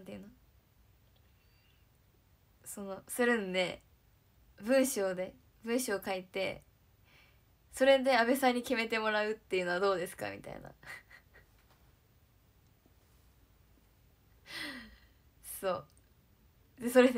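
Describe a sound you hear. A young woman speaks cheerfully and close to a microphone.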